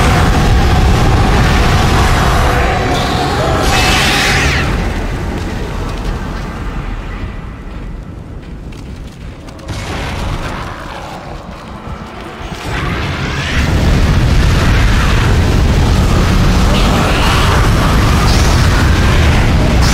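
A flamethrower roars loudly in bursts.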